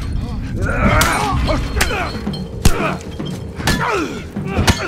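Heavy blows thud during a scuffle.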